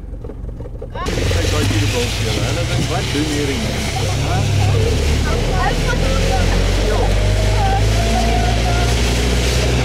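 Wind blows outdoors with a steady rush.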